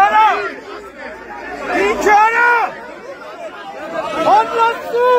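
Men in a crowd shout loudly and over one another outdoors.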